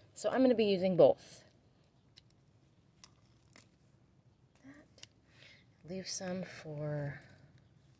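Scissors snip through plant stems.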